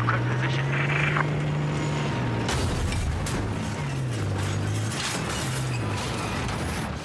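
A heavy tank engine rumbles and drones steadily.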